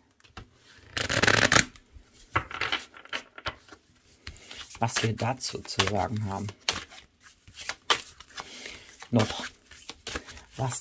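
Playing cards riffle and flutter as they are shuffled close by.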